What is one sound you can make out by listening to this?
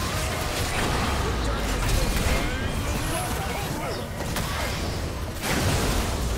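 Spell blasts whoosh and crackle in a busy video game fight.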